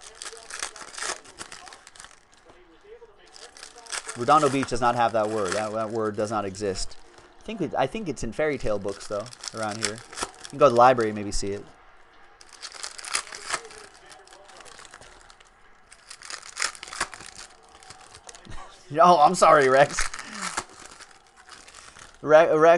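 Foil card packs crinkle and tear open in hands.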